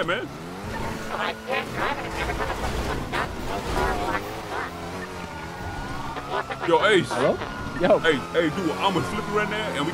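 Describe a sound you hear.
Tyres screech as a car skids and drifts.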